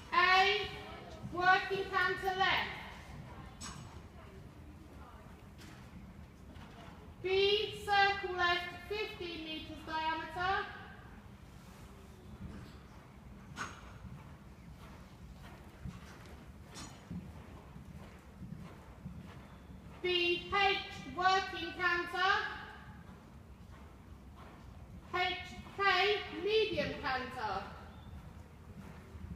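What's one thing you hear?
A woman calls out instructions loudly in a large echoing hall.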